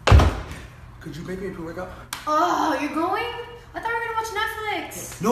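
A young woman speaks with exasperation close by.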